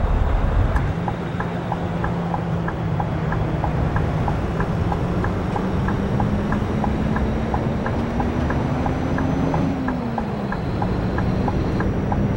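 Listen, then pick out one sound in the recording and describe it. A turn signal ticks in a fast, even rhythm.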